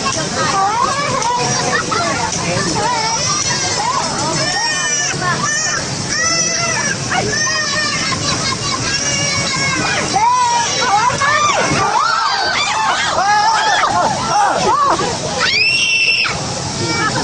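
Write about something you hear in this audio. Riders on a fairground ride scream and shriek loudly.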